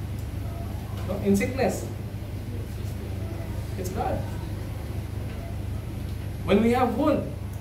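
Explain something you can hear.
A man speaks calmly into a nearby microphone, with pauses.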